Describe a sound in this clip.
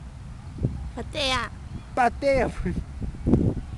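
A boy calls out briefly nearby.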